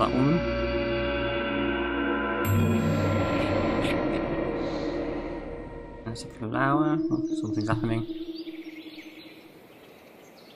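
Dark, droning game music plays, then fades away.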